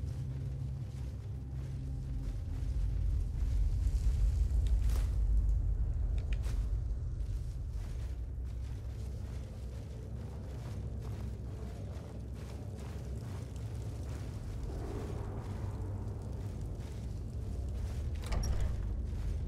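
Footsteps patter on stone in a large echoing hall.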